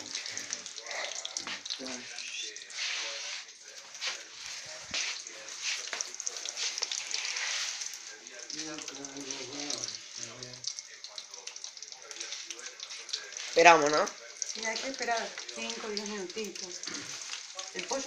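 Oil sizzles and crackles as food fries in a pan.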